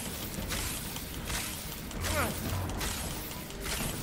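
An explosion bursts with a loud crackle.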